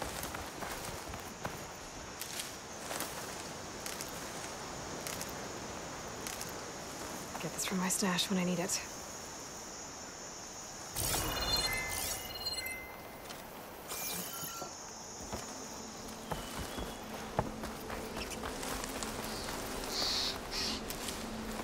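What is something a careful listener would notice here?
Footsteps run through rustling grass and leaves.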